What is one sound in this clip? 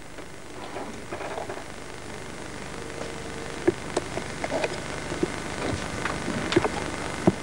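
A woman speaks quietly into a microphone.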